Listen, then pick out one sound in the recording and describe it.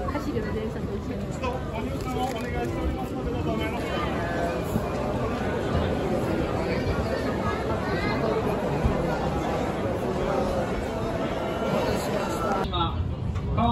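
A large crowd chatters loudly in a big echoing hall.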